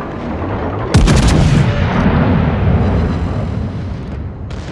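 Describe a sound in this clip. Heavy naval guns fire with a deep, booming roar that rumbles away.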